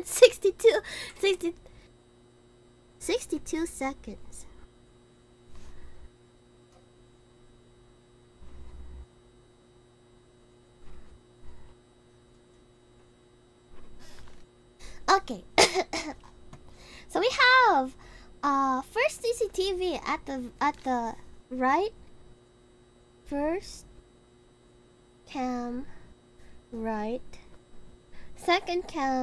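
A young woman talks animatedly and close into a microphone.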